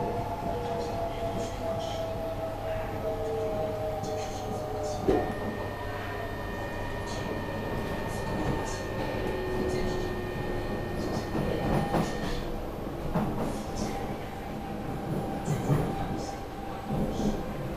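A train hums and rumbles steadily along the track.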